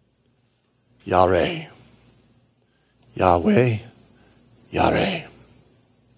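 A man speaks through a microphone in short, emphatic phrases with pauses between them.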